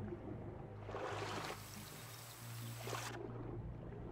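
Water splashes and rain hisses as a swimmer breaks the surface.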